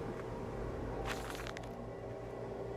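Paper rustles as a page is unfolded.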